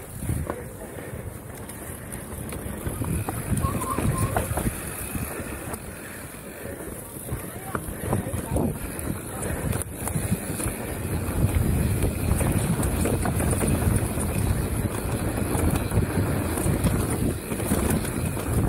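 A bicycle frame rattles and clatters over bumps.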